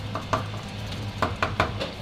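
A spoon scrapes and clicks against a pan.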